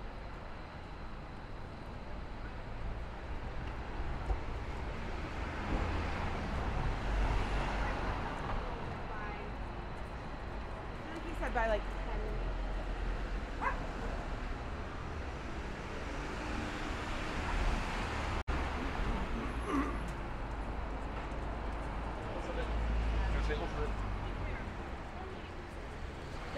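Traffic rumbles on a city street.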